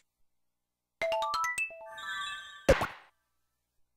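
A rising video game jingle chimes.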